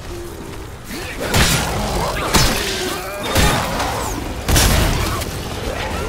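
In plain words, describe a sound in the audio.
A creature shrieks and snarls close by.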